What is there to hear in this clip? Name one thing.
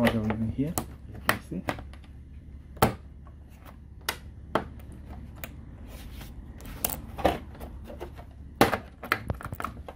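Plastic clicks and knocks as hands handle a computer casing.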